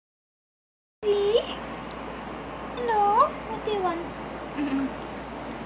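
A young woman speaks softly and sweetly, close by.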